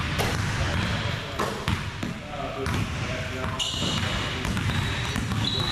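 A basketball bounces on a wooden gym floor, echoing in a large hall.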